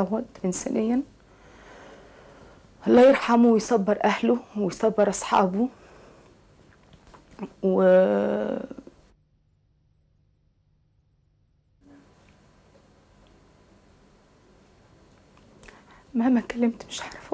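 A woman speaks calmly and close by, pausing often.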